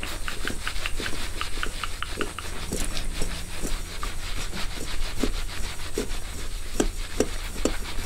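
Fingers gently scratch and rustle through hair close to a microphone.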